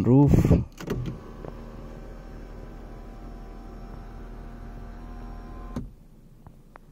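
An electric motor hums steadily as a sunroof slides open, then stops.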